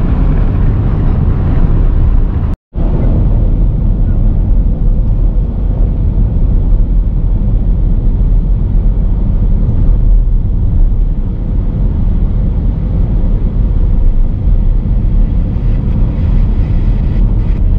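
A car's tyres rumble steadily on the road.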